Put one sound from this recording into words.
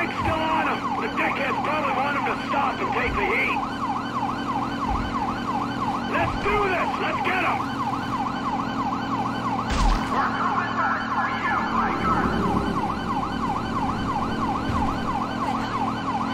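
A siren wails up and down rapidly.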